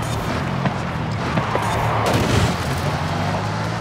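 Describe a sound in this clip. Tyres skid and scrape on gravel.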